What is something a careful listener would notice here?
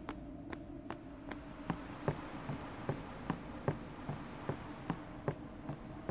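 Footsteps thud at a steady walking pace on a wooden bridge.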